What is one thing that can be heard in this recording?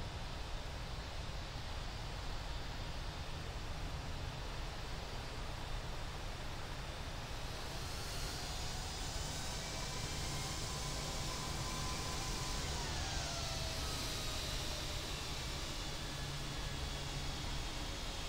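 Jet engines roar steadily.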